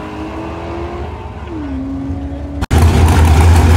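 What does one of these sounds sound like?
A race car engine whines far off and drops in pitch.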